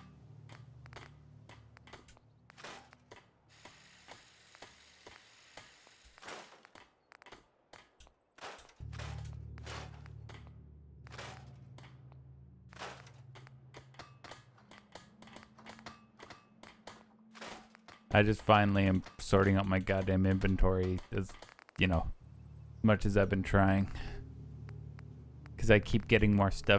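Short menu clicks tick in quick succession.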